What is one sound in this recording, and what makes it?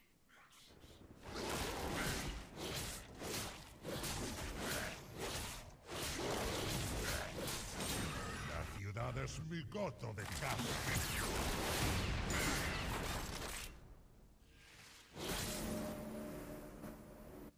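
Video game battle effects clash and whoosh.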